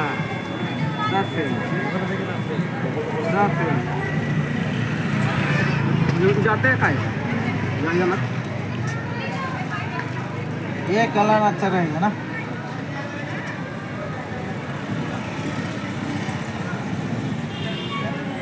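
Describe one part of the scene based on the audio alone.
A steady murmur of street noise fills the background.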